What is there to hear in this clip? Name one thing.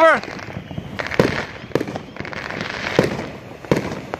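Fireworks pop and bang in the distance.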